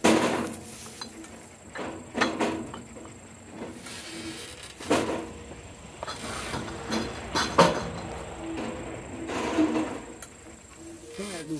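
Donkeys rustle through leafy branches as they browse.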